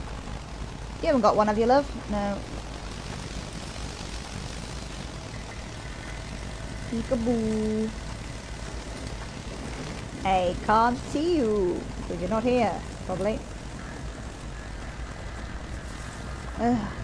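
A young woman speaks calmly into a close microphone, in short remarks.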